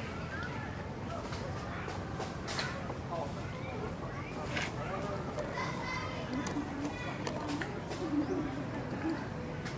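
Leaves rustle as a monkey moves through the branches.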